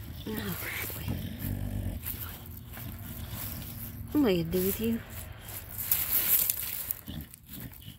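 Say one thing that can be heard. Gravel crunches as a dog rolls and rubs on it.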